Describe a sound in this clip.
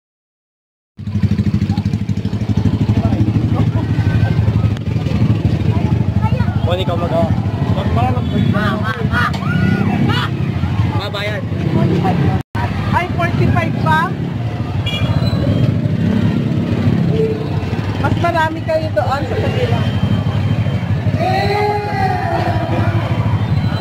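A motorcycle engine rumbles steadily nearby.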